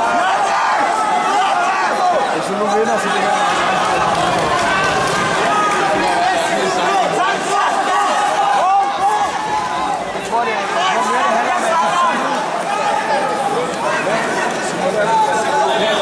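A crowd of spectators shouts in a large echoing hall.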